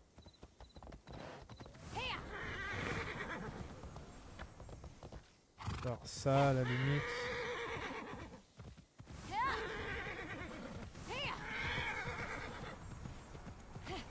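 A horse gallops over grass.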